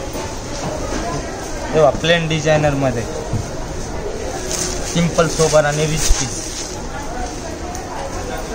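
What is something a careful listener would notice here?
Fabric rustles as cloth is unfolded and handled.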